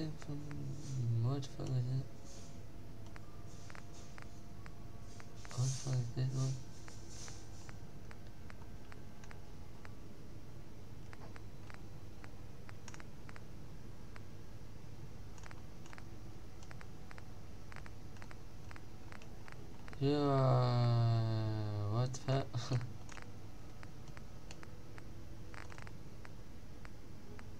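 Menu selections click softly in quick succession.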